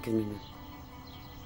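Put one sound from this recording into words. An elderly man chuckles softly nearby.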